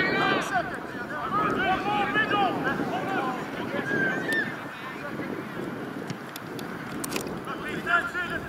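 Young men shout and call out to each other across an open playing field.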